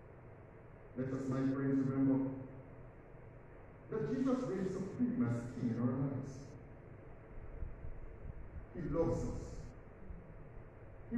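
A man speaks slowly and calmly through a microphone in an echoing hall.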